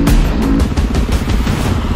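Water splashes as a motorcycle rides through a puddle.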